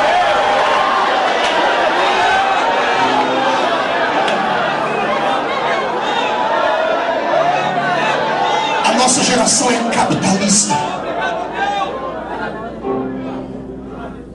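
A crowd of people calls out and prays aloud together.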